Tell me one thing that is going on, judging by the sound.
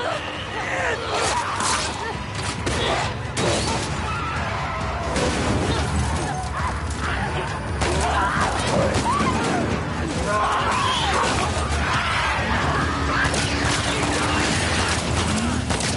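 Monsters snarl and shriek close by.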